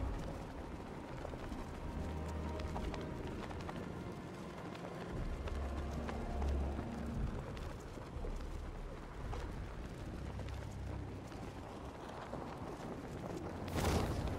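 Heavy rain falls with a steady hiss.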